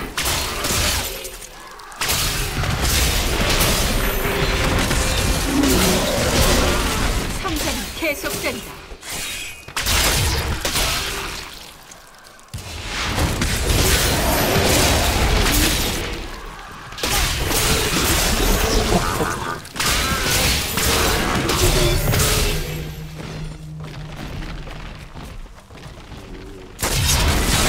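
Game spells crackle and explode in bursts as creatures are struck.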